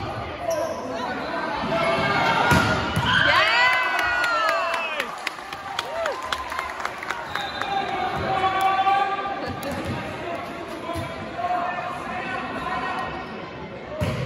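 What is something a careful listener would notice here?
A crowd of young spectators chatters and cheers in a large echoing hall.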